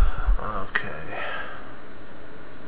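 A man speaks briefly and quietly close to a microphone.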